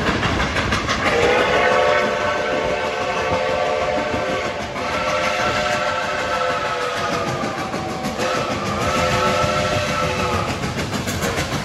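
A steam whistle blows in long blasts from a distance.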